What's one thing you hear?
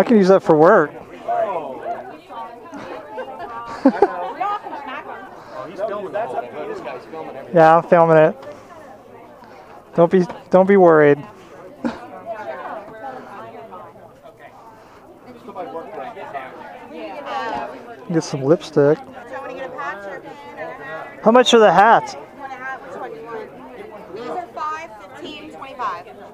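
A crowd of people chatters in the background.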